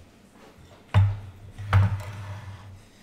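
A bowl is set down on a counter with a thud.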